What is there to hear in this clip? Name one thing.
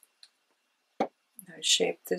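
A small plastic bottle is set down on a table with a light knock.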